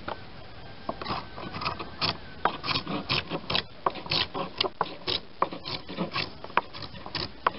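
A hand plane shaves wood in quick, rasping strokes.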